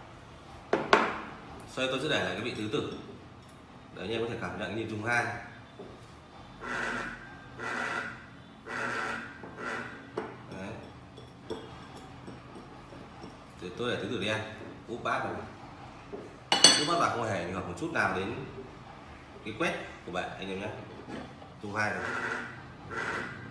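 A porcelain saucer and bowl clink on a table.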